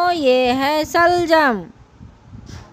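A high, cartoonish voice sings a long, wavering note into a microphone.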